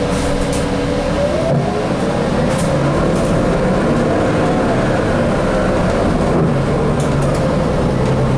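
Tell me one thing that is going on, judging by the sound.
A bus engine whines and rises in pitch as the bus pulls away.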